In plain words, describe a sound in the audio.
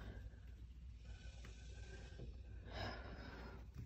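A card slides softly across a cloth.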